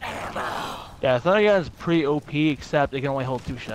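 A young man talks with animation into a microphone, close up.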